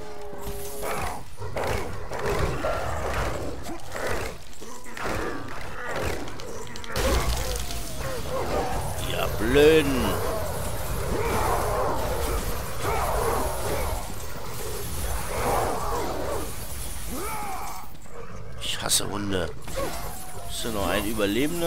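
Chained blades whoosh and slash into creatures again and again.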